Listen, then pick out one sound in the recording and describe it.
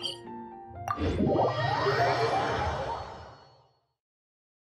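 A magical whoosh swells and fades away.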